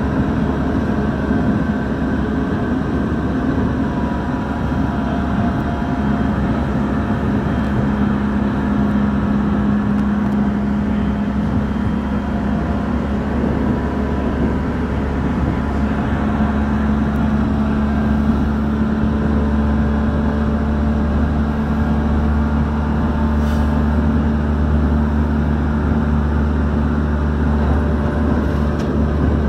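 An electric commuter train rumbles along the track at speed, heard from inside a carriage.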